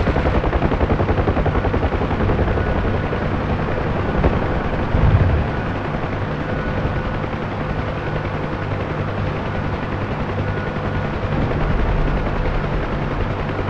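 A helicopter's rotor thumps steadily from inside the cabin.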